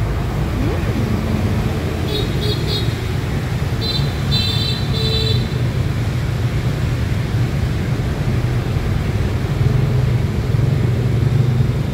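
Chopsticks clink against a soup bowl.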